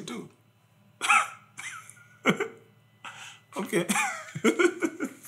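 A second man laughs and answers calmly, close by.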